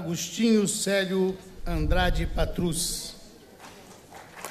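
An elderly man speaks calmly into a microphone in a large hall.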